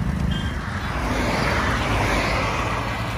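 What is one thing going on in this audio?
A car drives past on the road.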